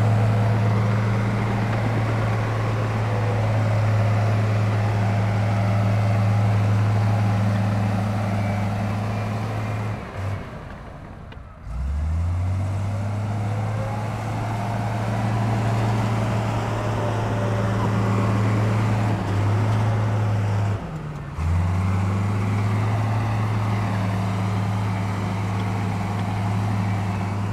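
A bulldozer engine rumbles steadily nearby, briefly dropping away twice.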